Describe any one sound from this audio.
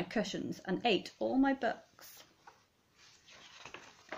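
Book pages rustle as they turn.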